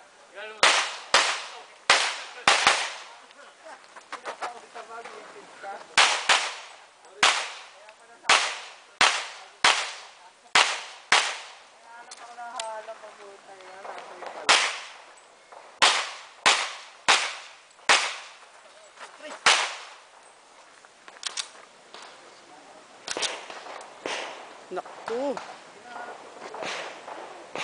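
A pistol fires rapid sharp shots outdoors, each followed by a short echo.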